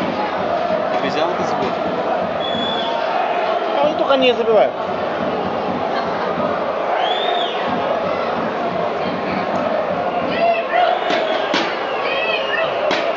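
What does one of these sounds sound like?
A large stadium crowd roars and chants steadily all around.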